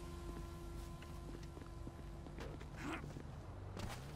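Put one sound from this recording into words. Footsteps run over pavement.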